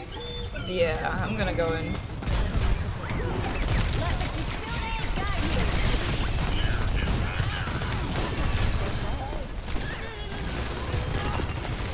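Game gunfire and blasts crackle and boom.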